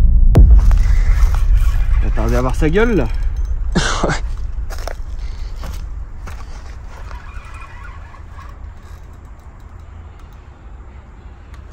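A fishing reel whirs as it is wound in.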